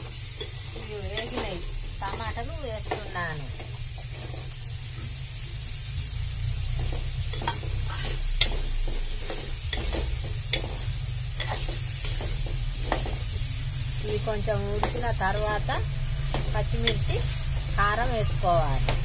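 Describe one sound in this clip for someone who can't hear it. An elderly woman speaks calmly close by.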